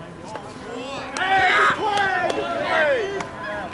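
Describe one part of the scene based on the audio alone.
Men shout and cheer loudly.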